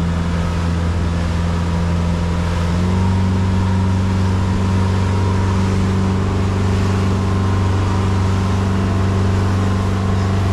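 Water churns and splashes in the boat's wake.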